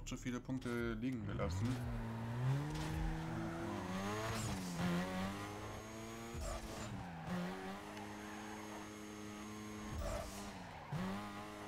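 A sports car engine revs hard, rising and falling through the gears.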